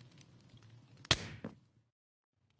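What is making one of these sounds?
Glass shatters with a sharp crash.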